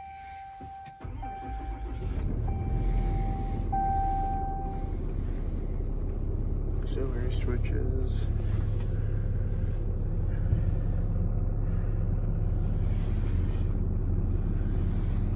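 A diesel engine in a heavy-duty pickup starts up and idles with a low rumble.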